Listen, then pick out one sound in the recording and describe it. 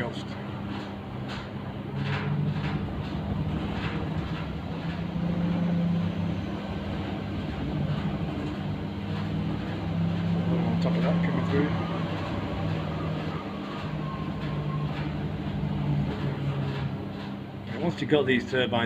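A power inverter hums steadily and low.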